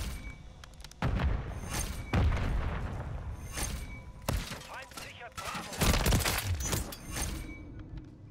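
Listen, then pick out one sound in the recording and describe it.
Gunshots fire in rapid bursts from a rifle.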